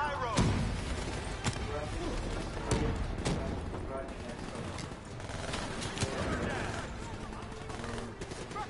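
Gunfire crackles and booms in a game.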